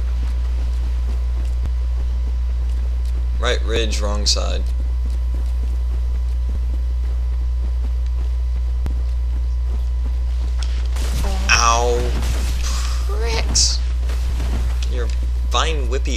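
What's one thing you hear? Armoured footsteps thud softly on grassy ground.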